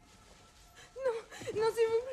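A woman cries out in distress.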